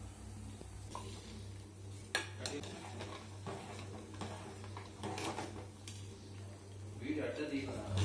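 A metal ladle stirs liquid in a metal pot.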